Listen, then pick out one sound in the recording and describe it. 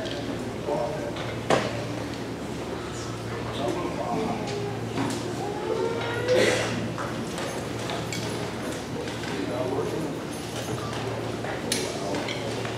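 A concert band plays instruments in a large echoing hall.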